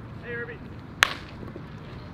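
A baseball bat cracks against a pitched ball.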